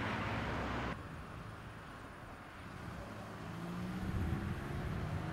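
A car engine hums as the car pulls away.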